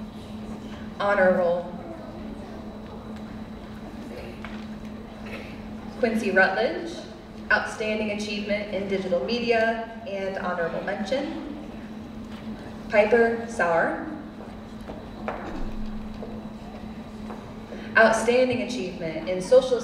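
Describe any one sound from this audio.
A man announces through a loudspeaker in a large echoing hall.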